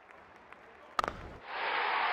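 A bat strikes a ball with a sharp crack.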